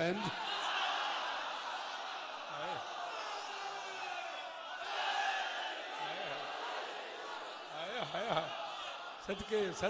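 A man chants loudly through a microphone in an echoing hall.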